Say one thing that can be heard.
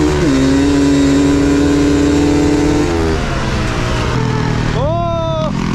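A dirt bike engine drones loudly up close, shifting pitch.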